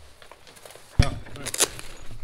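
A plastic buckle clicks.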